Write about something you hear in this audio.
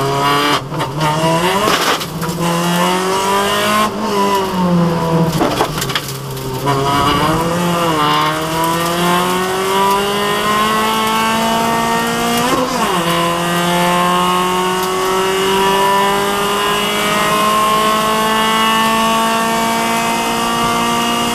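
A racing car engine roars loudly close by, rising in pitch through each gear and dipping briefly at each gear change.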